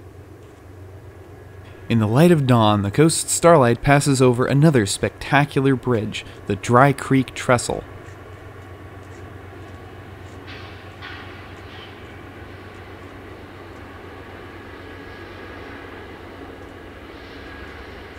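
A train rumbles across a bridge in the distance.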